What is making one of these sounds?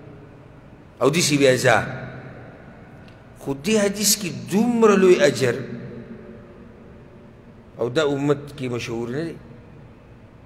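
A man speaks with animation into a microphone, in short bursts with pauses.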